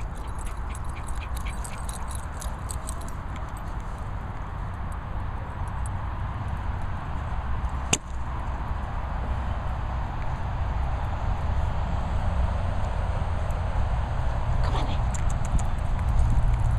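A dog's paws patter on grass.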